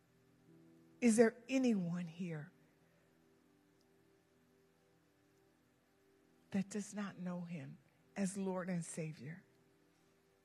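A woman speaks through a microphone in short phrases, with pauses in between.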